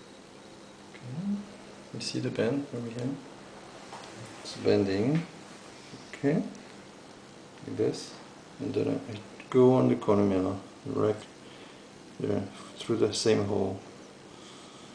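A man speaks calmly, close by, in short phrases.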